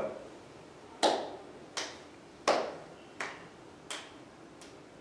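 A man claps his hands in a slow, steady beat.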